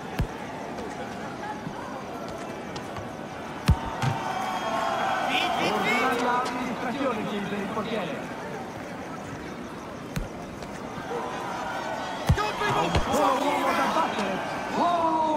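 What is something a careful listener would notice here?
A crowd murmurs and cheers steadily in a large arena.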